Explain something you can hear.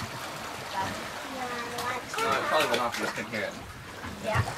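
Young children talk and call out.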